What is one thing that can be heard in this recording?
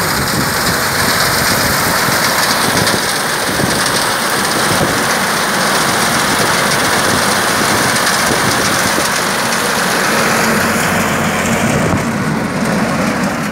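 A tractor engine runs with a steady loud rumble.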